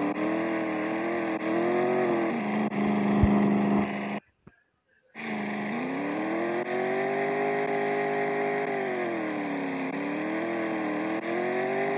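A small car engine hums steadily, its pitch rising and falling as it drives.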